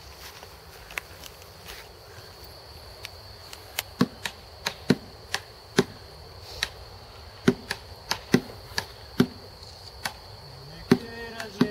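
A guitar is struck in sharp, irregular single strokes outdoors.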